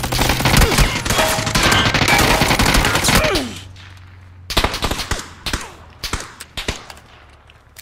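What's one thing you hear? Rapid gunshots crack loudly, then come in sparse single shots.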